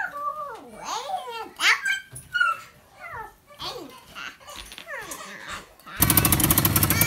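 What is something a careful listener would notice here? A young child babbles and squeals close by.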